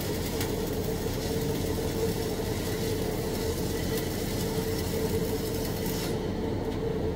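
A welding arc crackles and hisses steadily.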